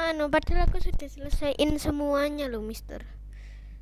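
A child speaks with animation over an online call.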